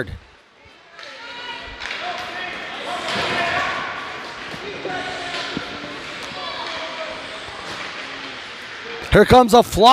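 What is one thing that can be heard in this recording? A crowd of spectators chatters and calls out in a large echoing rink.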